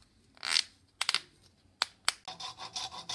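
Wooden pieces knock together.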